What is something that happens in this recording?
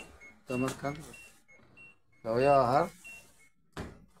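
A washing machine beeps with short electronic tones.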